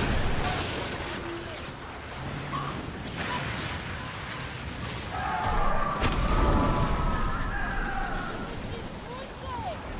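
Stormy waves crash and roar around a ship.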